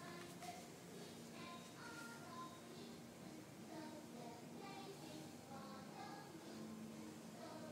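A baby babbles nearby.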